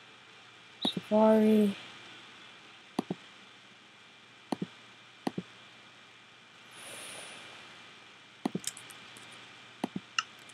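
A computer mouse clicks sharply several times.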